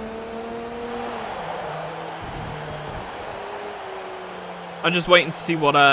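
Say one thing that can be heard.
A racing car engine hums and drops in pitch as the car slows for a bend.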